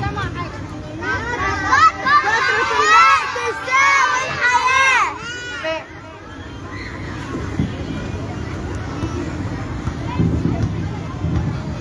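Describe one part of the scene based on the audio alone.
A crowd chatters in the background outdoors.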